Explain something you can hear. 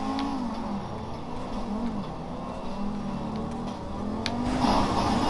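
A sports car engine hums steadily and revs.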